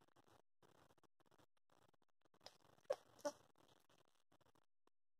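A sleeping domestic cat breathes in short, noisy puffs.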